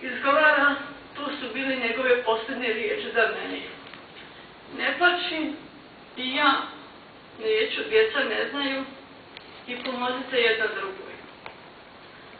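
A middle-aged woman speaks slowly and with feeling into a microphone in a large hall.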